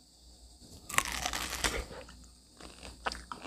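A young woman bites into juicy fruit and chews wetly, close to the microphone.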